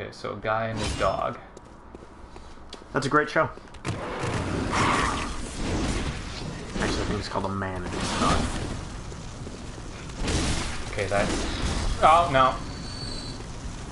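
A blade swings and strikes with heavy thuds.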